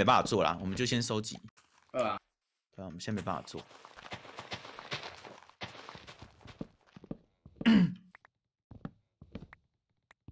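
Leaf blocks crunch and rustle as they break.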